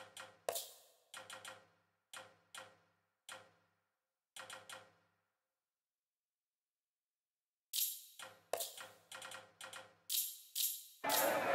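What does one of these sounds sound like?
Menu selections click softly, one after another.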